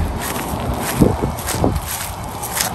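Footsteps thud on grass.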